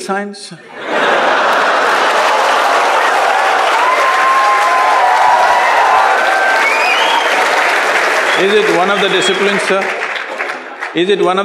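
A large crowd laughs and applauds in a big hall.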